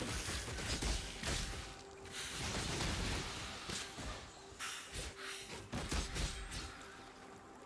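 Arrows whoosh through the air and strike in quick bursts.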